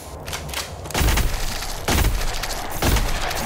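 Game spells whoosh and burst in quick blasts.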